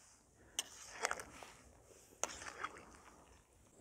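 A metal ladle scrapes and stirs in a pot of liquid.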